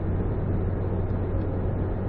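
A truck passes close by.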